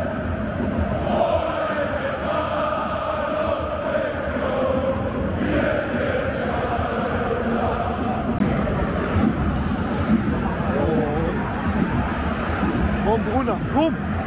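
A large stadium crowd chants and sings loudly in unison.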